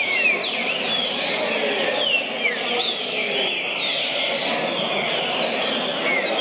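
A caged green-winged saltator sings in loud, clear whistled phrases.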